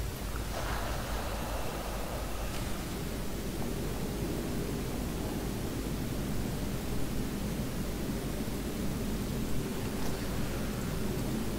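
A young man talks calmly into a nearby microphone.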